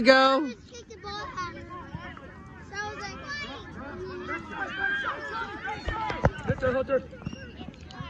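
Adult spectators shout and cheer close by, outdoors.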